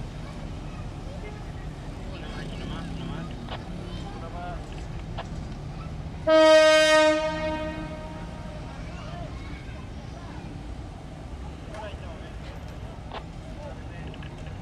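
A train rumbles as it approaches.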